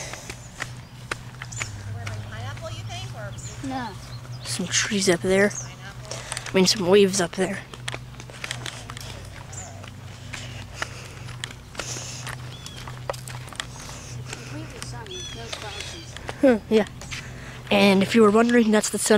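Sneakers walk on a paved path outdoors.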